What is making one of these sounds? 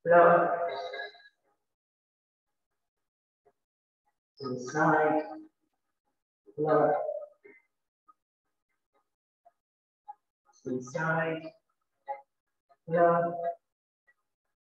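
A woman speaks calmly in short phrases with pauses, close to a microphone.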